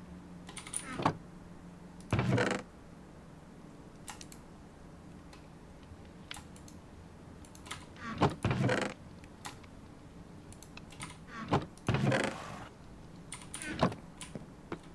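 A wooden chest thuds shut.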